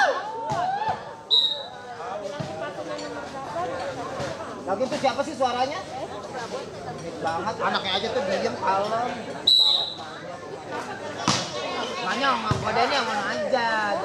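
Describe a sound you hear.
Several young men shout and call out on an outdoor court.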